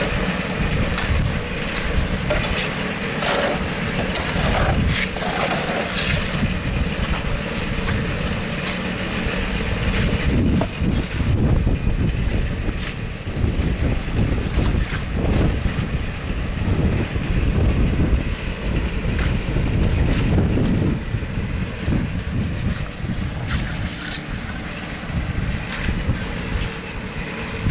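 Wind blows outdoors with a low rumble.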